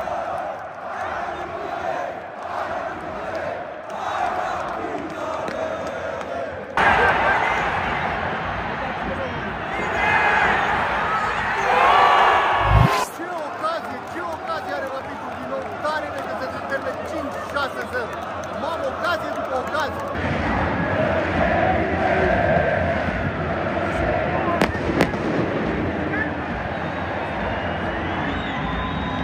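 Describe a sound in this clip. A large stadium crowd chants and roars all around.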